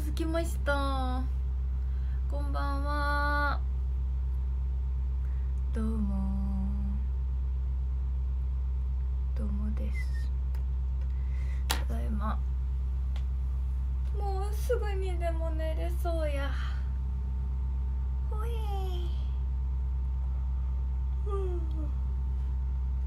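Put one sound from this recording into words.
A young woman talks close to a microphone, with animation.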